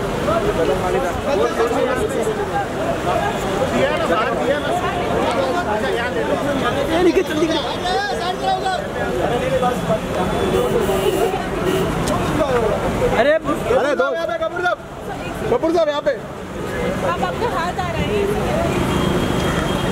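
Several men talk and call out loudly close by, outdoors.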